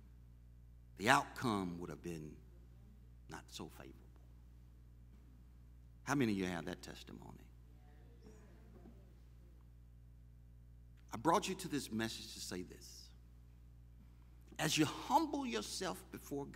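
A man preaches with emphasis through a microphone, in short bursts with pauses.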